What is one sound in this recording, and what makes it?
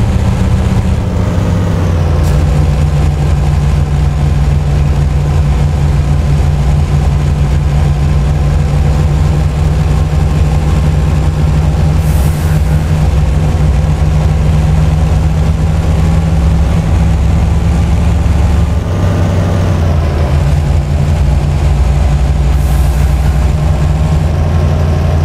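A truck engine hums steadily and shifts pitch as the truck changes gear.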